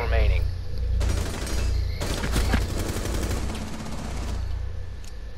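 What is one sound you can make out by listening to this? A rifle fires a burst of loud shots.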